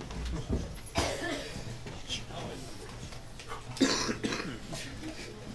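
An audience laughs now and then.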